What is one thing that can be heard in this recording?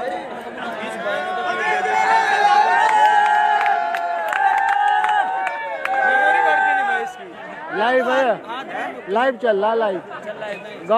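Men shout and cheer loudly nearby.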